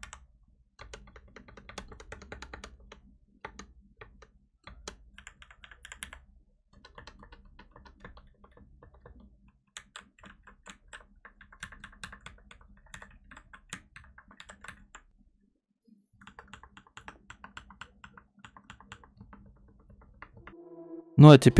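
Keys on a mechanical keyboard clack rapidly as someone types.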